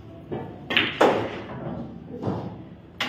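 Pool balls click together.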